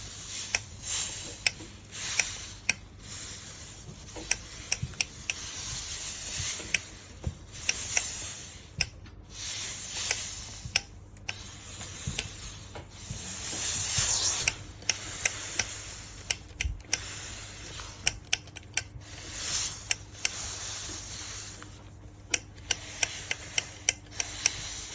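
A steam iron glides and rubs over fabric.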